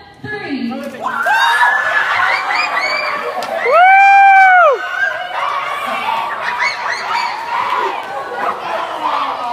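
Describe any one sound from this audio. Young children cheer and scream loudly.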